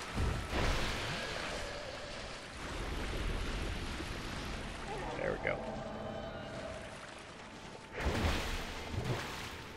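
Water splashes as a figure wades quickly through it.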